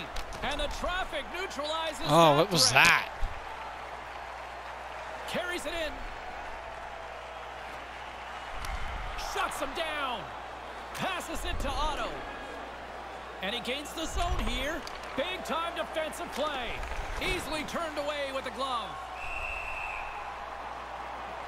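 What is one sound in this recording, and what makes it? Hockey sticks knock against a puck.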